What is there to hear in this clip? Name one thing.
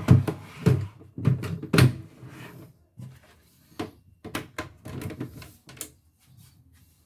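Hands knock and rattle against a sewing machine.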